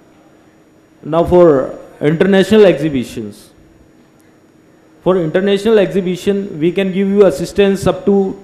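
A young man speaks into a microphone through a loudspeaker.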